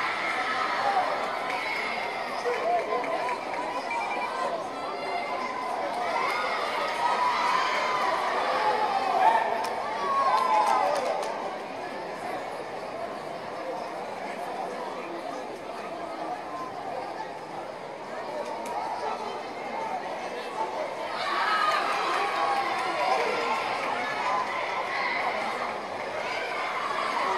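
A crowd in a large echoing hall cheers and chatters.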